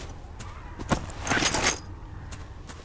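A gun clicks and clatters as it is swapped for another.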